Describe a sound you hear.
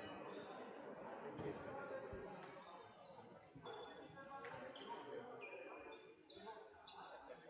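Spectators murmur in a large echoing sports hall.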